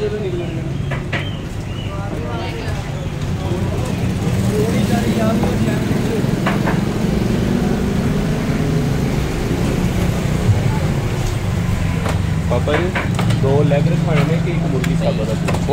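A knife chops through meat on a wooden block.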